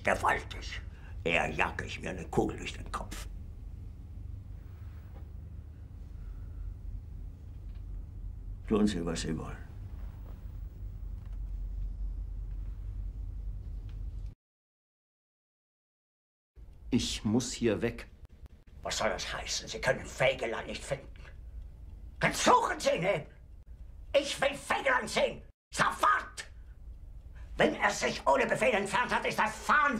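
An older man speaks angrily and forcefully.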